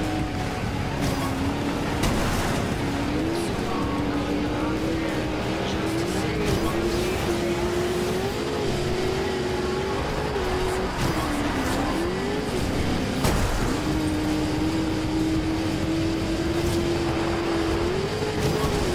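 A truck engine roars steadily, its pitch climbing and dropping with gear changes.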